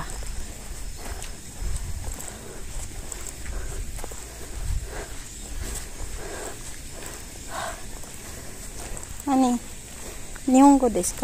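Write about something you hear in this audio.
Footsteps walk steadily on a road outdoors.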